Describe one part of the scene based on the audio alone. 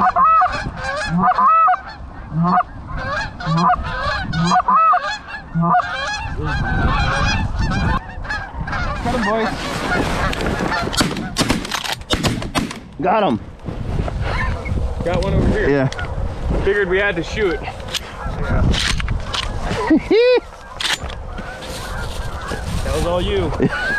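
Geese honk loudly overhead, many calls overlapping.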